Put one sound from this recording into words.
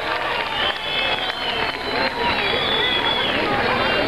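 People in a crowd clap their hands.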